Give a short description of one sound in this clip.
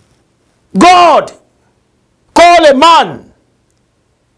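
A middle-aged man preaches loudly and with passion in short bursts.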